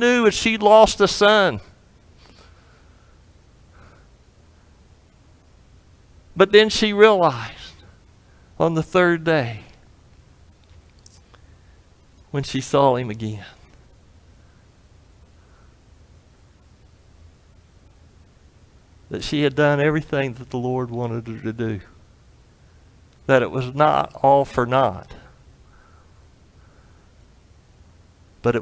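A middle-aged man speaks slowly and deliberately through a microphone, with pauses, in a reverberant room.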